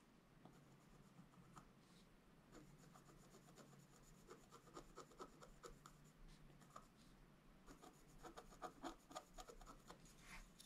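A wooden stylus scratches lightly across paper in short strokes.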